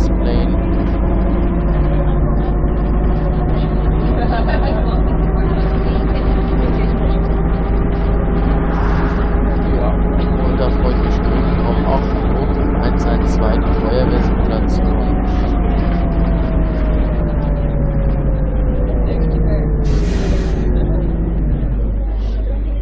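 A bus engine drones steadily as the bus drives, then winds down as it slows to a stop.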